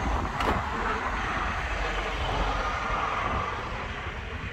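A van drives past close by.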